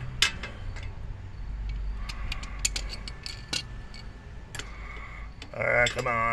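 Metal parts click and rattle close by.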